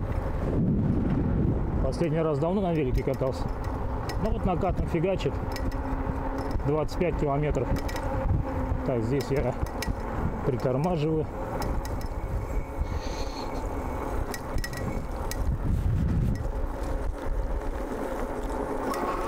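Bicycle tyres roll over asphalt.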